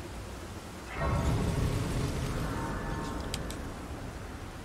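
A bright magical shimmer swells and rings out.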